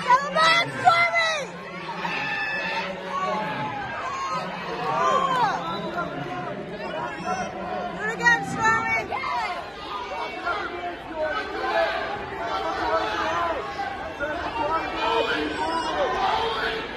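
Several people in the crowd yell loudly in bursts.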